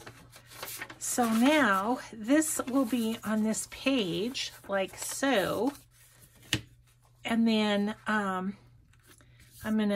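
Paper rustles and crinkles as it is folded and handled.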